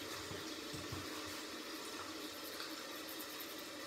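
A toothbrush scrubs against teeth close by.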